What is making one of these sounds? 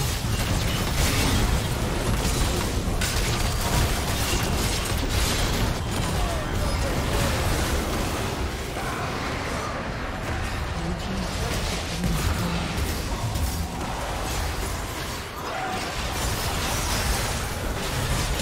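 Spell effects crackle and blast during a fast game battle.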